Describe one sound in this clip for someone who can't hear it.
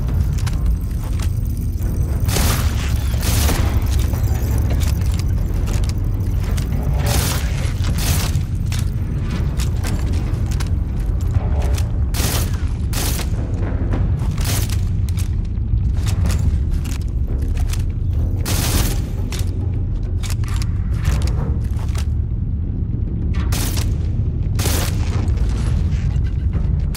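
A low rumbling drone hums steadily.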